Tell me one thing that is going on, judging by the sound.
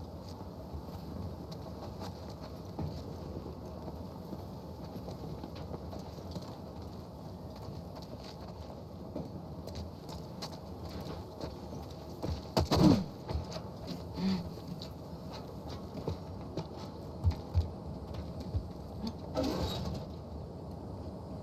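Footsteps scuff over a hard floor.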